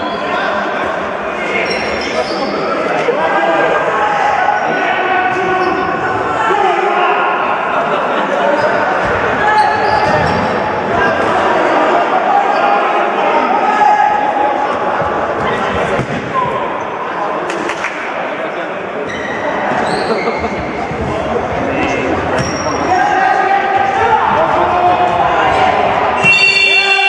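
Many voices of spectators and players shout and chatter in a large echoing hall.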